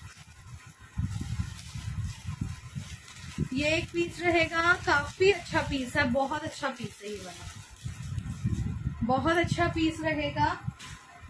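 A plastic wrapper rustles and crinkles.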